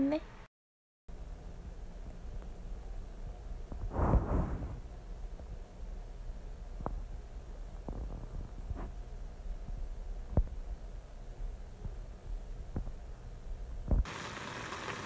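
A cat licks its paw with soft wet clicks.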